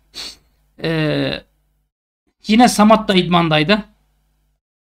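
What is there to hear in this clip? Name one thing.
A man speaks close to a microphone, with animation and in short bursts.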